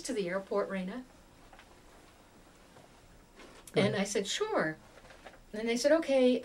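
An elderly woman speaks calmly and close by, with pauses.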